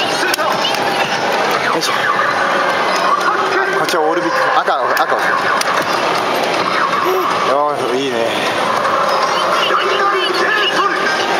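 An arcade game machine plays loud, busy electronic music.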